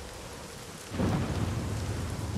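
A heavy body lands on a floor with a thud.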